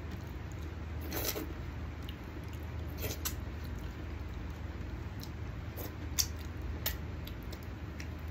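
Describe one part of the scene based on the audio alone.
A man slurps and sucks food off his fingers up close.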